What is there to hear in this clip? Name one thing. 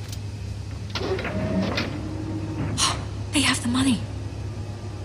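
A young woman speaks in a low, tense voice.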